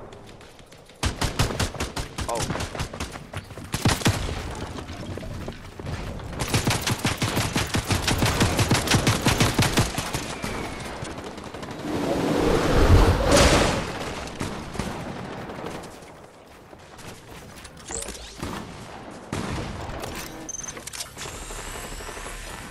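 Gunshots fire in quick, rapid bursts.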